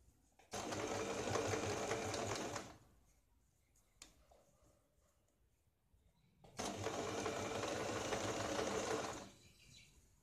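A sewing machine runs in quick bursts, whirring and clattering.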